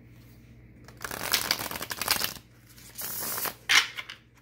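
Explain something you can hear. Playing cards rustle and slide.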